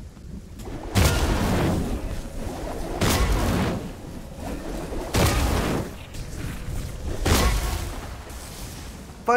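Wind rushes past in loud gusts.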